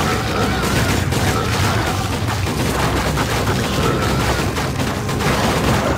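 Explosions boom from a video game.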